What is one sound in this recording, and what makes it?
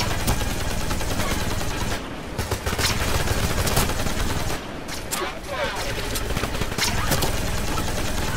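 Energy shots zap and whine.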